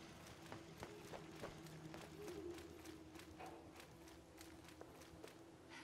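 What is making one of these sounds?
Footsteps crunch steadily on dry grass and dirt at a walking pace.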